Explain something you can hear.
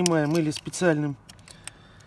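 A metal tool scrapes and clicks against a wheel hub.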